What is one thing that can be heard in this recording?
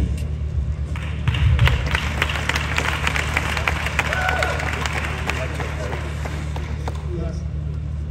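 Acoustic guitars strum a rhythm.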